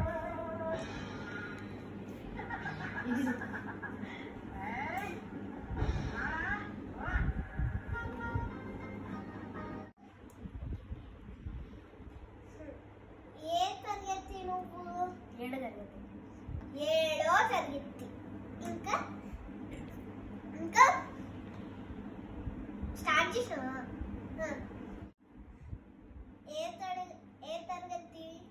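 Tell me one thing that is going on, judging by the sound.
Young girls talk with animation close by.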